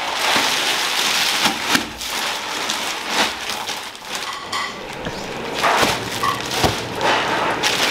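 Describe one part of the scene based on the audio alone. Plastic sheeting crinkles and rustles.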